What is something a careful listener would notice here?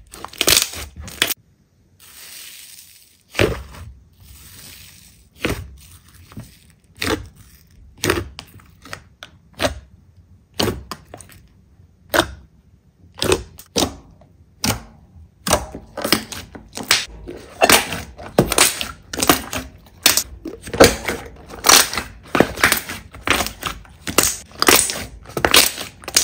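Air bubbles in slime pop with sharp crackles.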